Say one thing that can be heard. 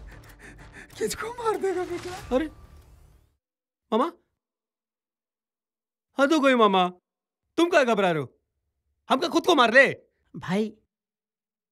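A man speaks angrily and threateningly up close.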